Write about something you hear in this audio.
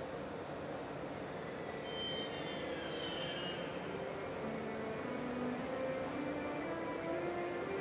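An electric locomotive's traction converters whine in shifting, stepped tones.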